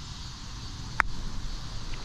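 A park golf club strikes a ball with a sharp click.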